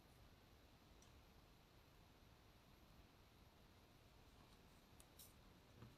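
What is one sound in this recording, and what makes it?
A crochet hook clicks faintly.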